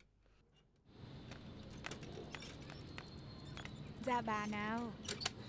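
A bicycle rattles as it is wheeled outdoors.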